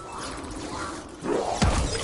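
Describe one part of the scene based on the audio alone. A zombie growls close by.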